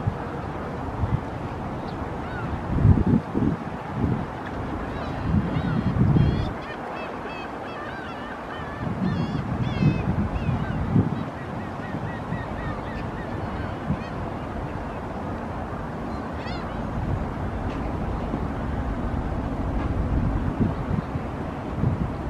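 Wind gusts rumble outdoors.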